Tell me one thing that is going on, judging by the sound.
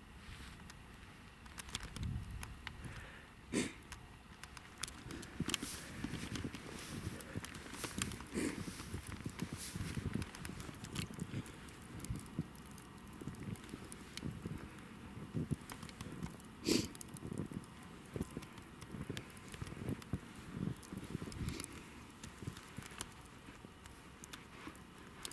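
Boots crunch through deep snow with steady footsteps.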